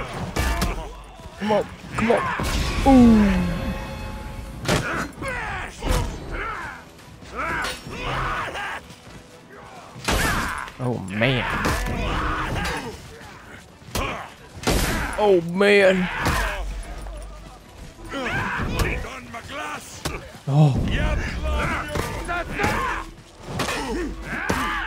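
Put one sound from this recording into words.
Swords and axes clash and clang in quick fights.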